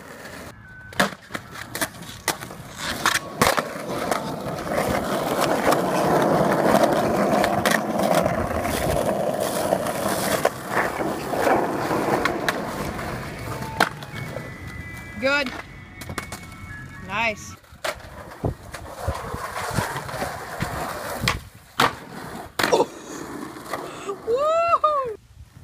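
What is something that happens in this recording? A skateboard clacks sharply against the ground.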